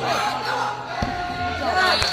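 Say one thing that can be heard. A gymnast lands with a thud on a mat.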